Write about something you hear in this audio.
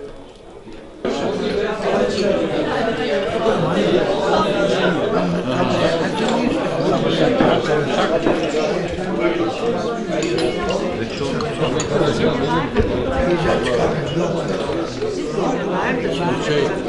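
A crowd of men and women chatter loudly all around.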